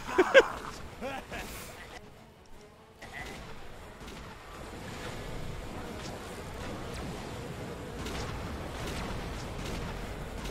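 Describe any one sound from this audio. Energy weapons zap and whine.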